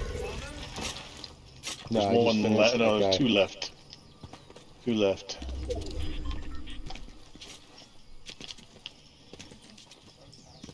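Quick footsteps patter over grass and gravel.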